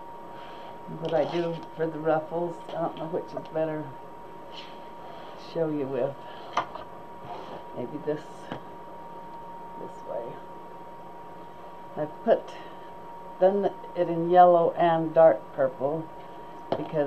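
An elderly woman talks calmly into a microphone.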